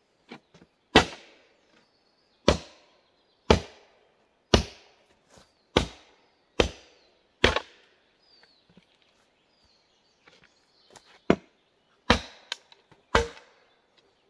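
An axe chops into a log with sharp, heavy blows, outdoors.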